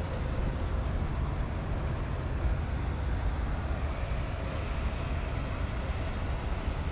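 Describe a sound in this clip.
Dogs pad and scuffle about on sandy ground nearby.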